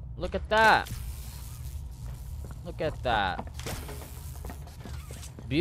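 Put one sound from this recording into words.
An electric zap crackles and buzzes.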